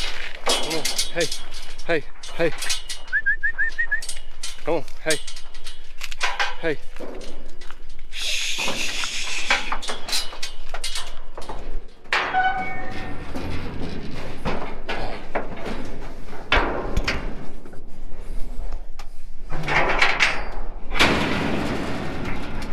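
Metal gate bars rattle and clank.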